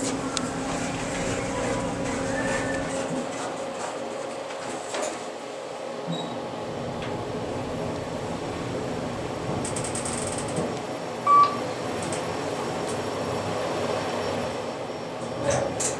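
An elevator car hums steadily as it rises.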